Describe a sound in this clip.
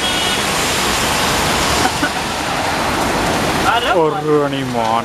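A vehicle sends up a loud rushing splash of water.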